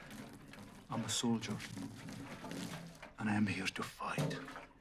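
A man answers tensely.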